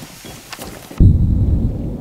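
A stun grenade goes off with a loud, deep bang.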